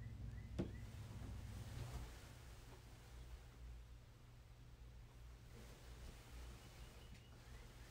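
A man murmurs a prayer quietly, close by.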